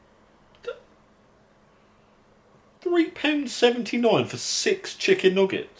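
A young man talks from a little further away.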